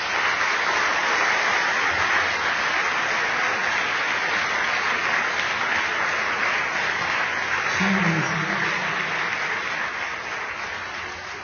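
An audience applauds loudly in a large room, slowly fading.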